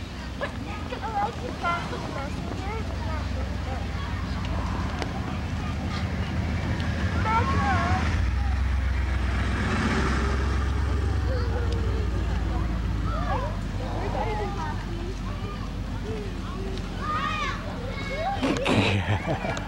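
A crowd of children and adults chatter and call out outdoors.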